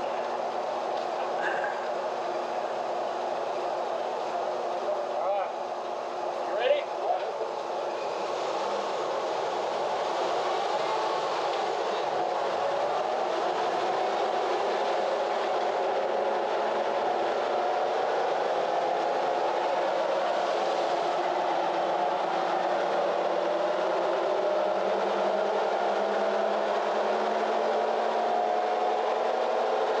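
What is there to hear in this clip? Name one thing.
A truck engine runs under load and revs steadily higher, heard in a large echoing room.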